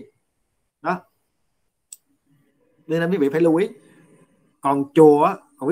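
A man speaks calmly and close up, heard through an online call.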